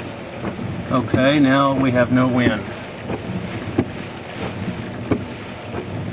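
A windshield wiper swipes across the glass.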